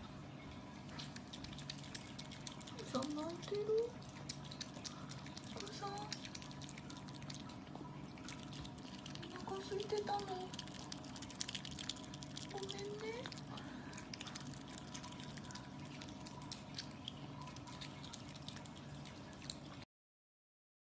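An otter chews food with crunchy, wet clicks.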